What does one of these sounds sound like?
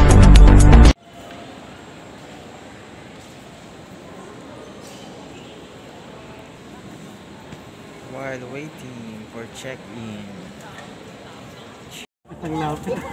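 Background murmur echoes through a large, echoing hall.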